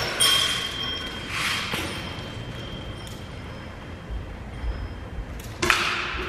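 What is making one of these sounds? A toy gun fires with sharp clacks that echo in a large hall.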